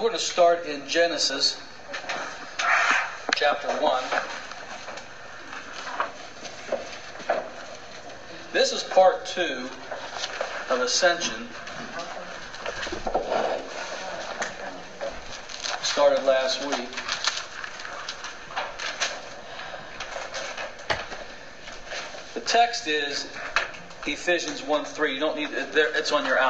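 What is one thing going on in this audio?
A middle-aged man speaks calmly through a clip-on microphone.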